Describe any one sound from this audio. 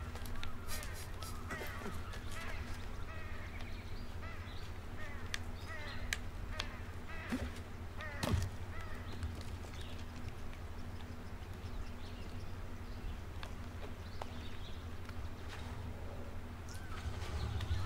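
Footsteps scuff over rock and earth.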